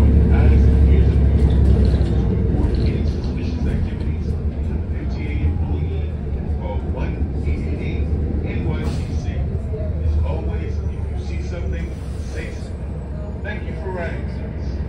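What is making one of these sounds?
Cars drive past close by, their engines and tyres rumbling.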